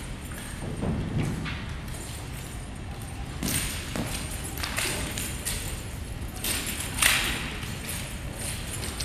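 Feet thud and shuffle on a mat.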